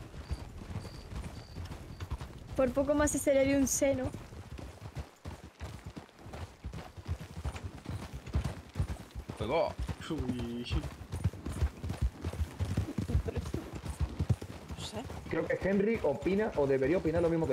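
Horse hooves clop steadily on a dirt trail.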